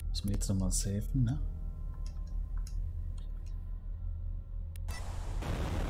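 Menu selection clicks chime.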